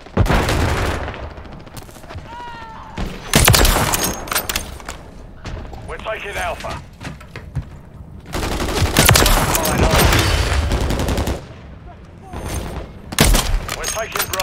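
A sniper rifle fires loud single shots that echo.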